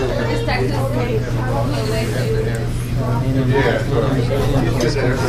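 A crowd of adults chatters indoors, many voices overlapping.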